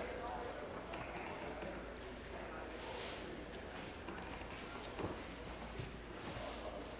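A man speaks formally into a microphone in a large echoing hall.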